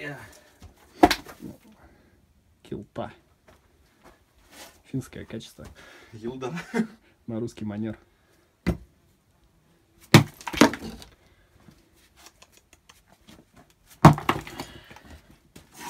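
Chunks of broken concrete thud and clatter as they are dropped.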